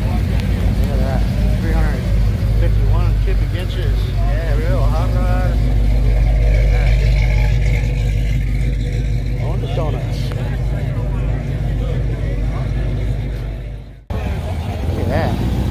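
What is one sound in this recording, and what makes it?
A crowd of adults chats outdoors.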